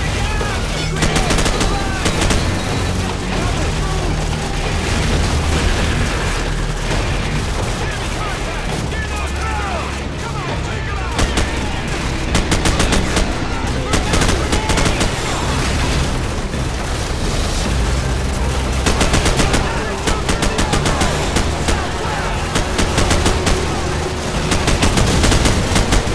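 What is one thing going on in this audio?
Explosions rumble and boom.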